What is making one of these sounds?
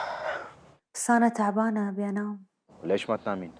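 A young woman speaks on the phone, upset.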